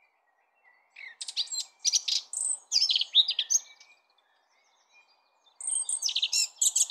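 A small bird chirps and sings in quick bursts outdoors.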